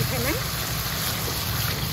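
Water pours into a sizzling pan.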